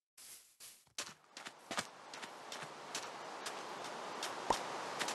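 Rain falls steadily and hisses.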